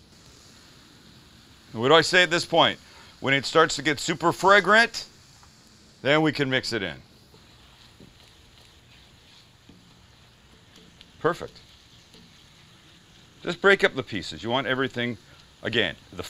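A spatula scrapes and stirs meat in a pan.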